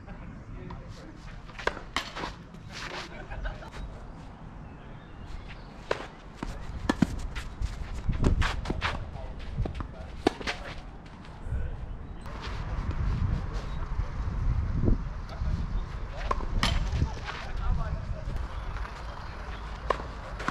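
Shoes scuff and slide on a clay court.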